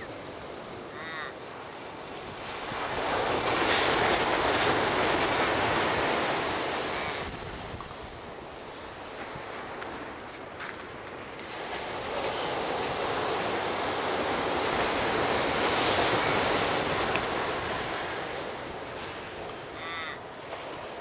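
Waves break and wash onto a beach in the distance.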